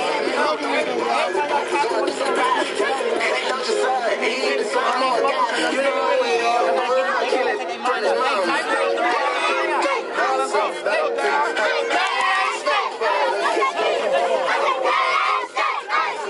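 A young man speaks loudly with animation close by.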